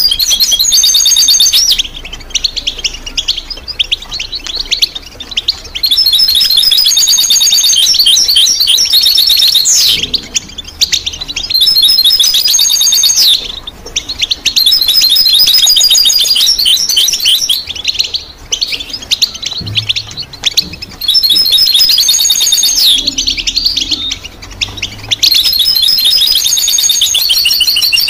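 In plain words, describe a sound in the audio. A small songbird sings loud, rapid trills close by.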